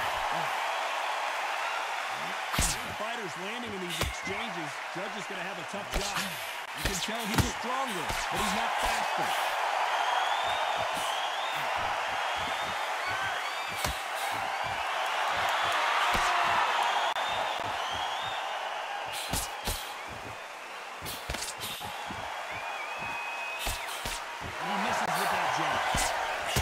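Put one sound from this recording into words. Punches thud against a boxer's body and gloves.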